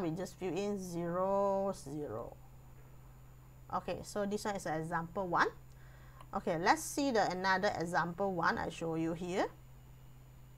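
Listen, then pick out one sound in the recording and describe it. A woman speaks with animation through a close microphone.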